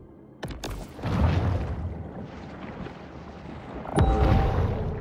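Water rushes and rumbles deeply as a large shark swims underwater.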